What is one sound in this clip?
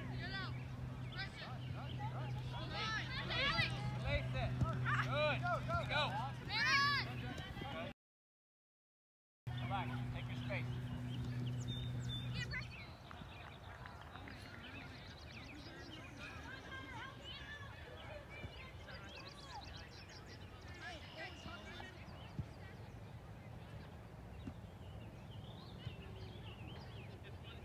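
Young players shout to each other from across an open field.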